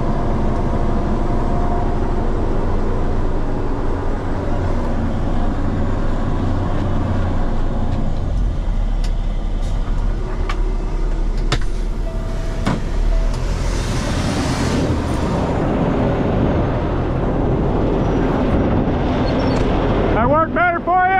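A truck's diesel engine rumbles steadily close by.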